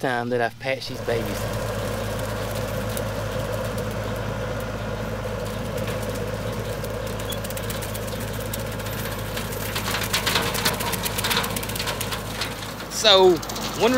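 A rotary mower whirs as it cuts through tall plants.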